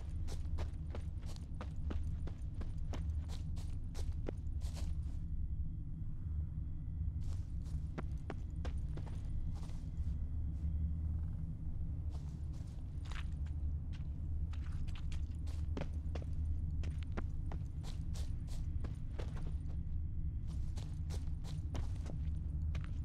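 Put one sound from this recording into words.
Hooves thud quickly on a dirt path.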